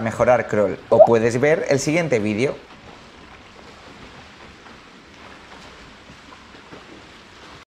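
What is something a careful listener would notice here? Water splashes as a swimmer strokes through a pool.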